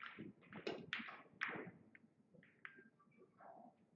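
Pool balls click against each other.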